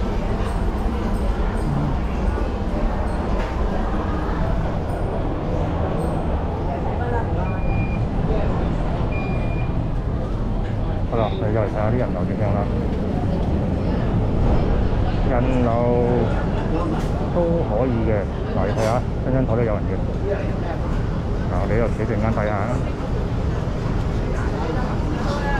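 A crowd murmurs in a large room, with voices and bustle all around.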